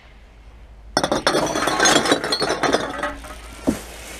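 Glass bottles and cans clink and rattle as they are tipped together.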